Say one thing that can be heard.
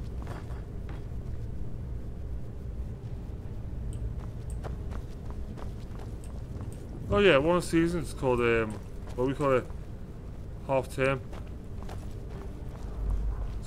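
Armoured footsteps scrape on stone.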